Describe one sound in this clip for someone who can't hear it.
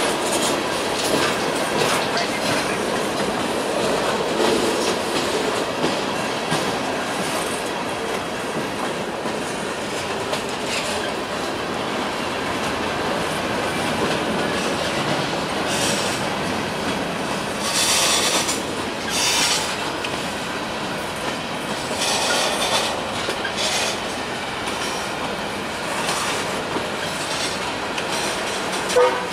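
A long freight train rumbles past close by, its wheels clattering steadily on the rails.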